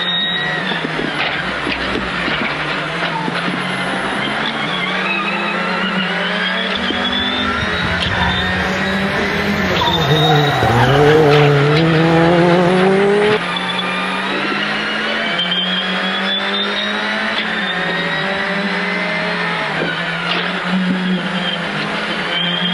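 A race car engine roars and revs, rising and falling in pitch as gears change.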